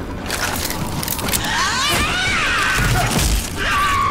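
A monster shrieks and snarls up close.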